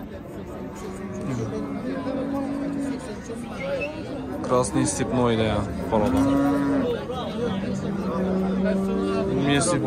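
Cattle low nearby.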